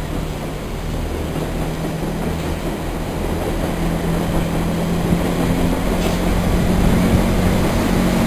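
A train rumbles along the tracks nearby, slowly growing louder.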